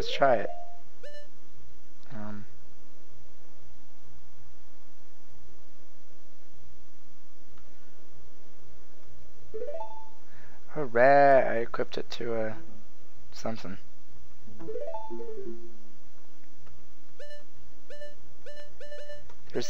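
Short electronic menu blips sound in quick succession.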